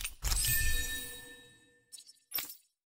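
A loud chime with a ringing shimmer sounds at the start.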